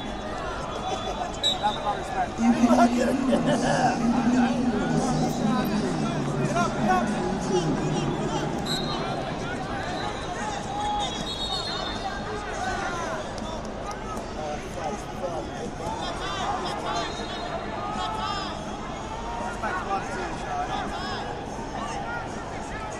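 Many people chatter and call out in a large, echoing hall.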